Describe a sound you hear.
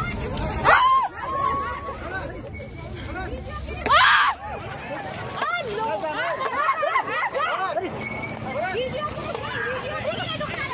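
A crowd of women shouts and wails outdoors.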